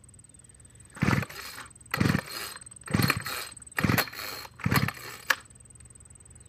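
A string trimmer's pull cord is yanked again and again, the small engine sputtering briefly each time without starting.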